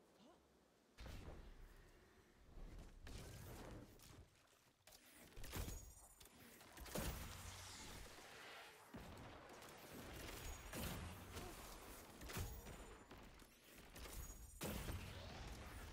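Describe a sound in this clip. Impacts and explosions boom and crackle.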